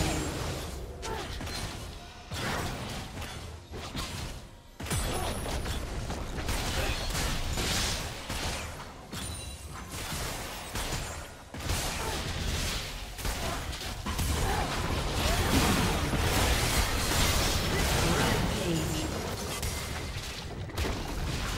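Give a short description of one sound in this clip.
Video game spells and attacks crackle, whoosh and clash in a battle.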